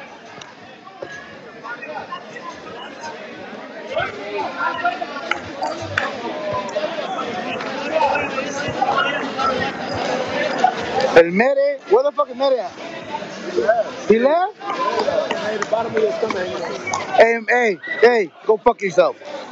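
A crowd of men chatters and calls out in a large echoing hall.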